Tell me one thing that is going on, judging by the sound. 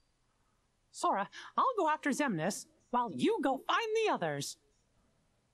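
A man with a high, squeaky voice speaks earnestly.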